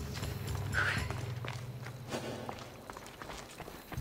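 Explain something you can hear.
Footsteps thud softly on wooden stairs.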